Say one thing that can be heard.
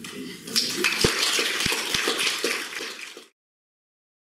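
A woman claps her hands.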